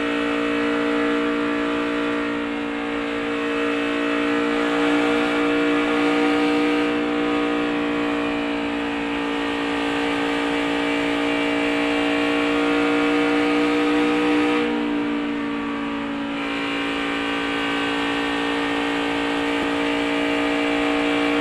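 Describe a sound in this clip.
A race car engine roars loudly at a steady high pitch.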